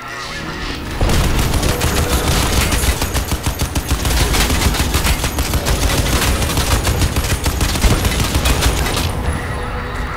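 A heavy machine gun fires long, rapid bursts.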